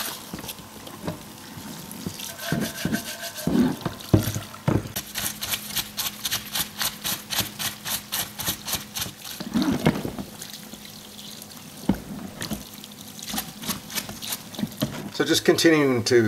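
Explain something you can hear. A stiff brush scrubs rapidly against a metal part.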